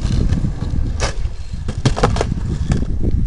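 A skateboard deck snaps and clacks on landing.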